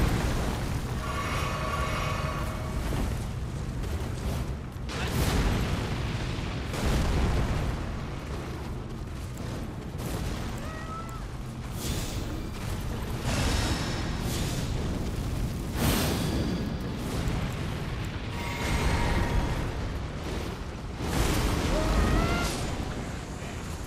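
Magic spells burst and shimmer with bright chiming tones.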